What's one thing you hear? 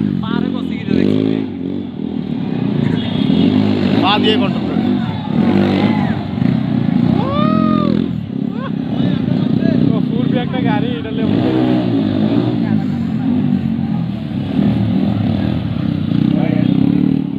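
Motorcycle engines rev loudly, rising and falling in pitch.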